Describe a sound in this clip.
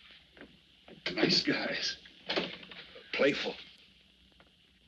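A man speaks tensely nearby.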